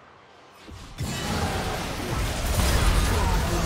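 Magic blasts and weapon clashes burst out loudly in a frantic fight.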